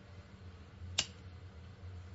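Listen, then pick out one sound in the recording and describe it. A lighter clicks once.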